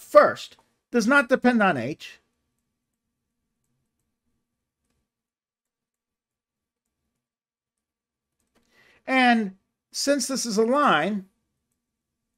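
A middle-aged man speaks calmly and clearly into a close microphone, in short phrases with long pauses.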